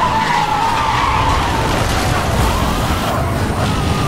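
Tyres screech while a car drifts.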